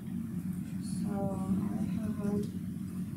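A young woman speaks briefly and quietly at a distance.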